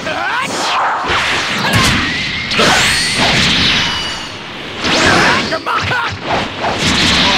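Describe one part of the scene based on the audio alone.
Heavy blows land with sharp, crunching thuds.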